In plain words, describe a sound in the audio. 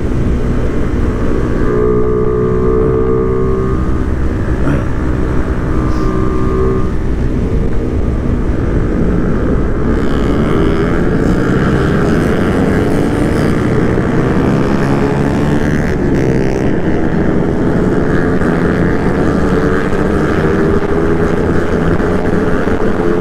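Wind rushes and buffets loudly past.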